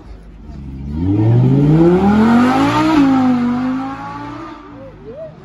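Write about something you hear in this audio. A car engine roars, rising in pitch as it speeds past close by.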